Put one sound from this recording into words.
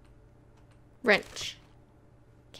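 A small box creaks open.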